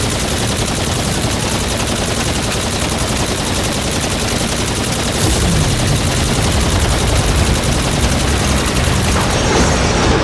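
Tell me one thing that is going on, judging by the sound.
A rapid-fire weapon shoots in a fast, steady stream of shots.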